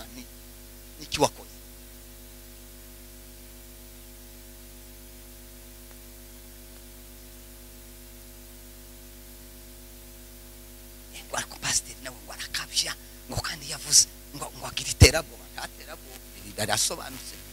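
A man speaks with animation into a microphone, heard over loudspeakers in an echoing room.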